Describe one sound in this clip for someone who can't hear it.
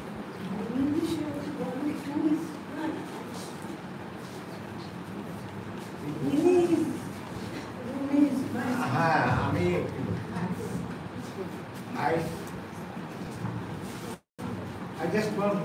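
Men and women talk and murmur close by.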